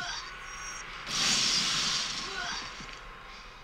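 A burst of fire roars and crackles.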